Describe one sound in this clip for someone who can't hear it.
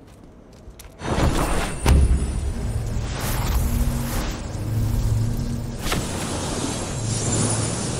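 Weapons clash and spells boom loudly in a fight.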